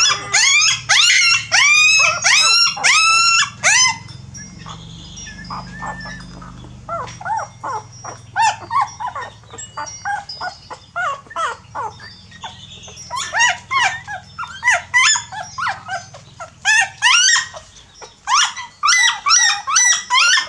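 Newborn puppies squeal and whimper loudly, close by.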